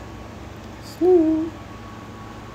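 A cat meows once, close by.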